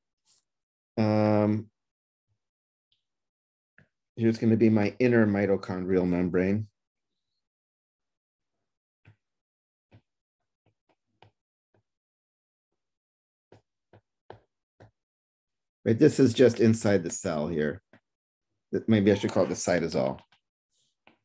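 A man speaks calmly through a microphone, in short bursts with long pauses.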